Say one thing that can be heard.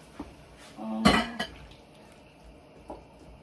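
A wooden spoon stirs food in a pan.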